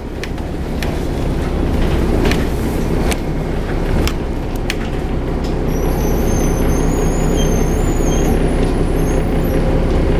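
A diesel city bus idles.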